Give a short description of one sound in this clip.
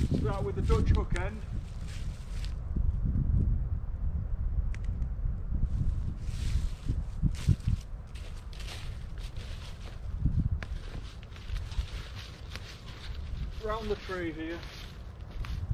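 A man speaks calmly nearby outdoors.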